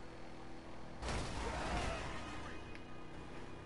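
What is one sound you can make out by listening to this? A car crashes with a loud thud and scrape.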